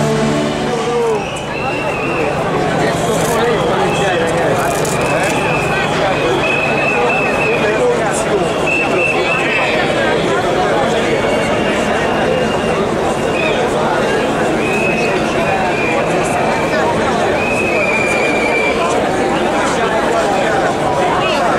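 A large crowd cheers and chants outdoors.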